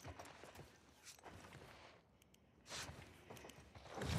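A wooden door swings open.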